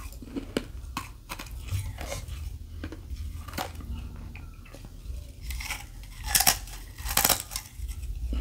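Ice crunches and cracks loudly between teeth, close up.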